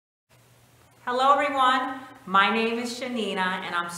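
A woman speaks calmly and warmly, close to a microphone.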